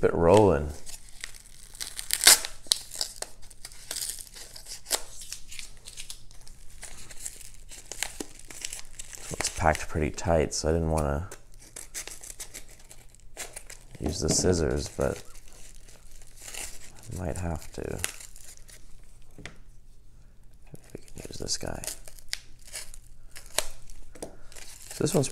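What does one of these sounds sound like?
Padded paper envelopes crinkle and rustle as hands handle them.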